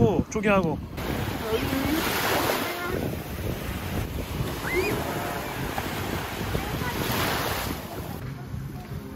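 Waves wash and foam onto a beach.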